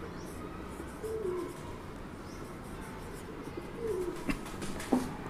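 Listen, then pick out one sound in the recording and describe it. A marker squeaks across a whiteboard.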